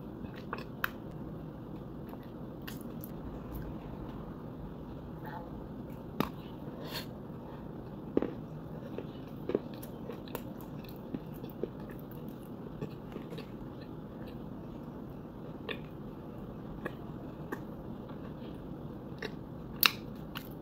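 A person chews food with wet, crunchy sounds close to a microphone.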